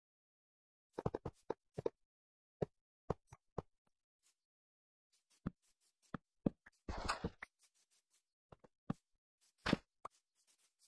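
Short clicks sound as blocks are placed one after another.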